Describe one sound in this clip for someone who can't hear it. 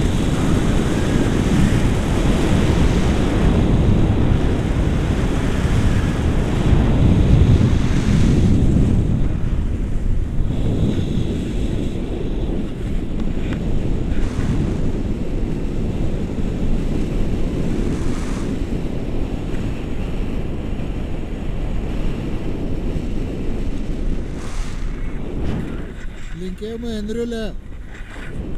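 Wind rushes past the microphone in open air.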